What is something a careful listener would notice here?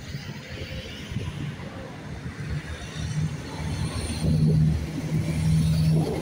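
A train's engine hums low and grows louder as it approaches.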